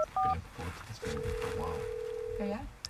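A ringing tone sounds faintly through a phone held to a man's ear.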